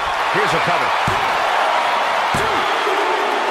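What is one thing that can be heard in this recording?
A referee slaps the mat while counting.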